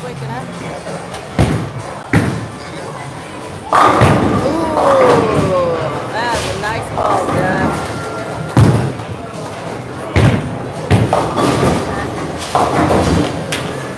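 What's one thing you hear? A bowling ball rolls down a lane and crashes into pins.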